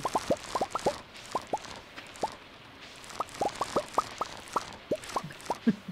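Crops pop as they are picked.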